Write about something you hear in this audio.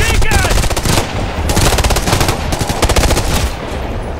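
An explosion bursts with a heavy boom.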